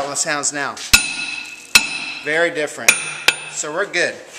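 A metal clip clicks sharply against a drum.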